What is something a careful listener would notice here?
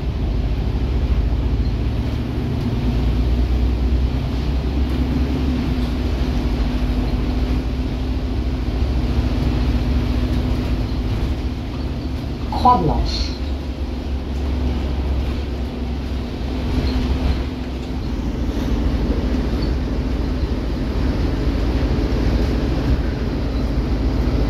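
A natural gas city bus drones from inside as it drives.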